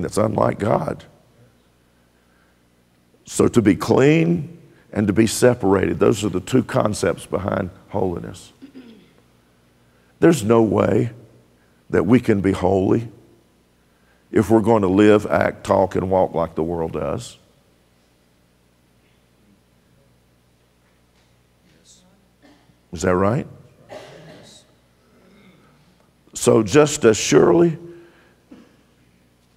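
A middle-aged man speaks with emphasis through a microphone in a large echoing hall, pausing often.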